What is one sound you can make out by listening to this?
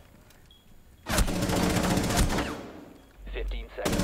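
Gunfire rattles in bursts close by.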